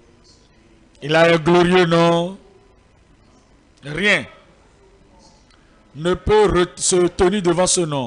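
An older man preaches forcefully into a microphone, heard through loudspeakers in a large echoing hall.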